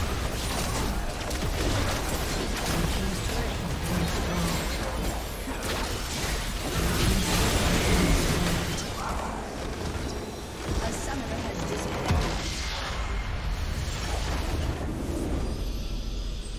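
Spell and weapon effects clash in a video game battle.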